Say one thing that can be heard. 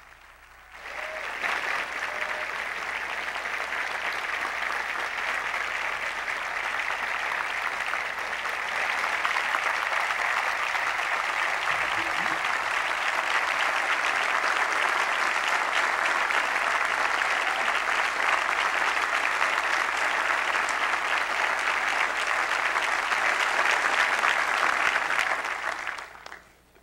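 A large crowd applauds loudly in a big open space.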